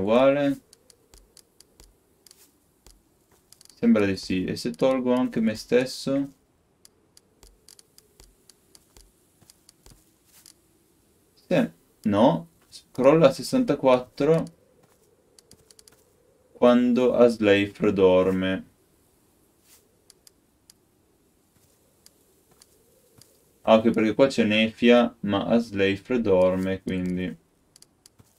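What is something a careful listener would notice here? A young man talks calmly and close into a microphone, in short bursts.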